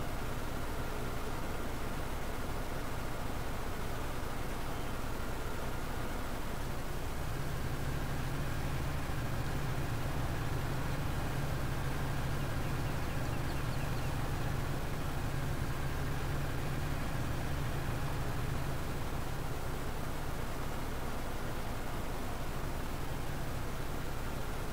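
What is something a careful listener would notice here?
A tractor engine drones steadily, growing louder and deeper partway through.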